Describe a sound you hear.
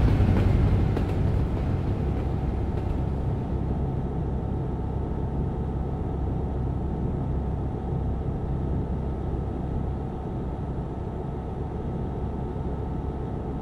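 Tyres roll on smooth road with a low rumble.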